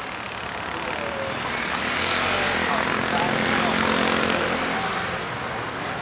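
A motorcycle passes close by.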